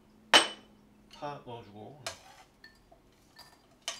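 Food is scraped off a plate with chopsticks.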